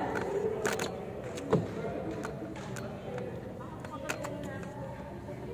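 Shoes squeak and thud on a hard court floor.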